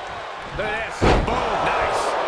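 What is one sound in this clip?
A heavy body slams onto the mat with a loud thud.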